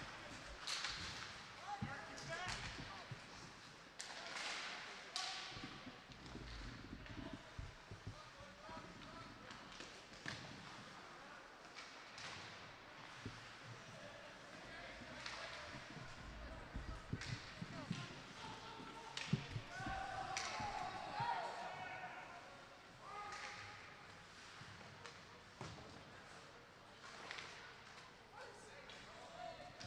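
Hockey sticks clack against a puck and the boards.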